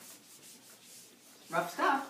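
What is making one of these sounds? An eraser rubs across a whiteboard.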